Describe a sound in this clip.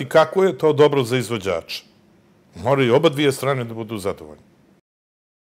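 An elderly man speaks calmly and earnestly, close to a microphone.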